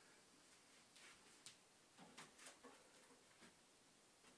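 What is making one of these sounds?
Bare hands and feet thud softly on a floor.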